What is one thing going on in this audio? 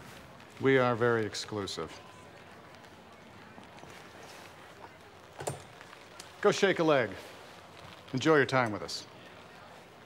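A man speaks in short phrases nearby.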